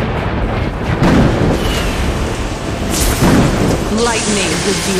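Lightning cracks and sizzles with loud bursts.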